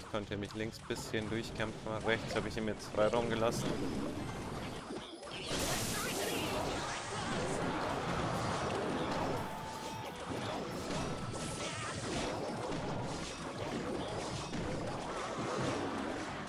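Game battle effects clash and bang continuously.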